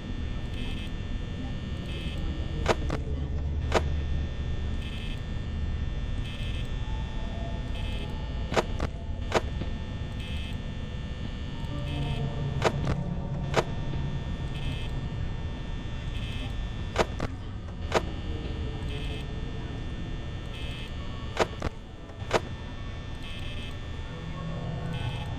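A desk fan whirs steadily.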